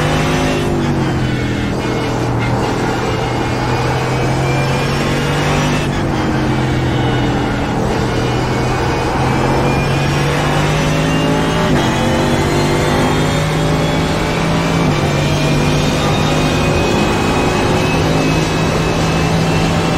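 A racing car engine roars loudly, its pitch dropping on braking and climbing as it speeds up through the gears.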